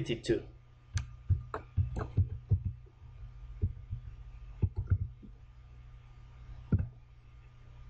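Keys click rapidly on a keyboard.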